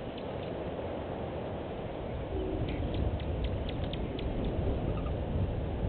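Wind blusters across the microphone outdoors.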